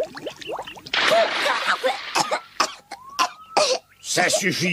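A young boy spits and sputters water.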